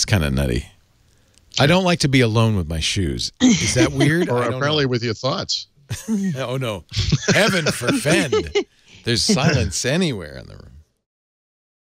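A middle-aged man talks with animation into a microphone.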